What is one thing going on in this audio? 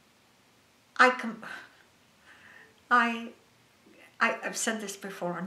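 A woman speaks with animation into a close microphone.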